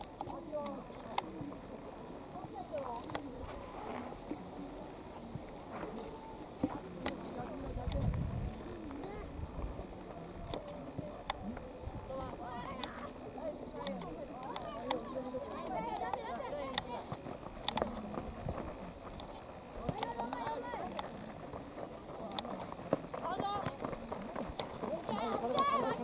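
Young boys shout and call out to each other across an open field.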